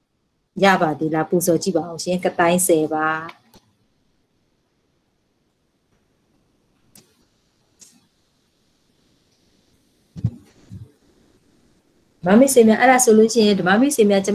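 A woman speaks calmly through a microphone on an online call, with pauses.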